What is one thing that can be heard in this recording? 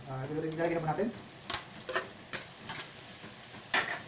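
Pieces of meat tumble from a metal colander into a pan.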